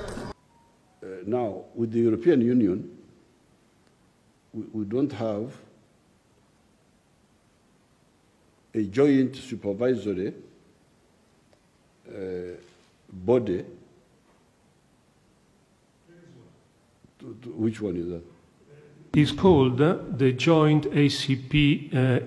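An elderly man speaks calmly through a microphone in a quiet room, with pauses between phrases.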